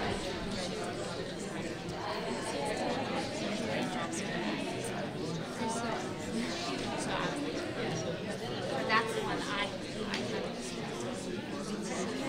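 A woman nearby talks with animation.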